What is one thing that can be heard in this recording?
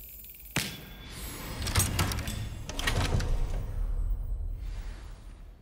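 Heavy wooden doors creak and swing open.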